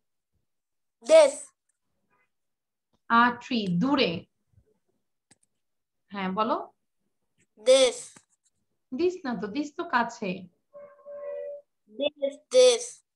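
A woman speaks calmly in short phrases, heard through an online call.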